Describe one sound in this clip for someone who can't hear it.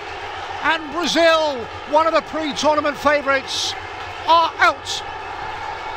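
Young men shout and whoop with excitement close by.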